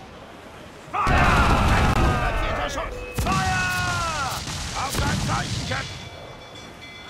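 Cannons fire in loud, rumbling booms.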